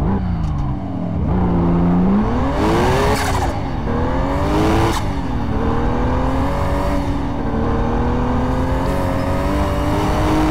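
A car engine roars as it speeds up through the gears.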